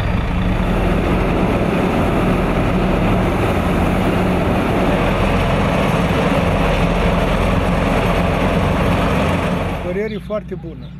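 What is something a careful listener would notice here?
The diesel engine of an asphalt paver runs with a low rumble.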